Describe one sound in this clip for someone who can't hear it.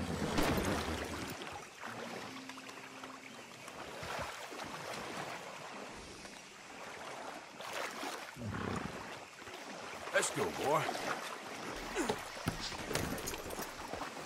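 A horse's hooves splash through a shallow stream.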